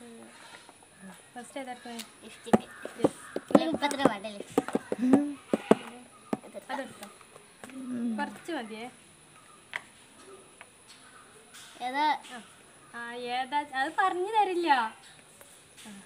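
Young girls talk and laugh nearby.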